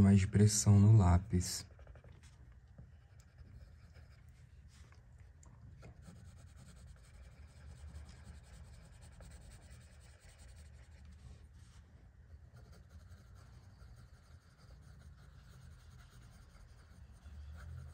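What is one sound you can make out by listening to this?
A pencil scratches softly as it shades paper.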